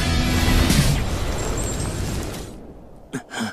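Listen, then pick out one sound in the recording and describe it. A magical energy blast roars and crackles loudly, then fades.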